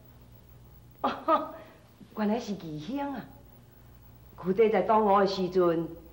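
A woman answers in a measured, theatrical voice.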